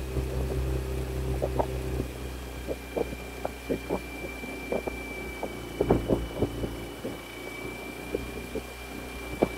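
A boat motor hums low and steady.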